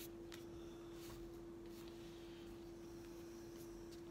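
A soft brush swishes lightly through hair.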